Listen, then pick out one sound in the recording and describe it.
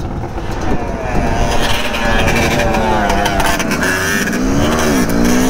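Another quad bike engine roars a short way ahead.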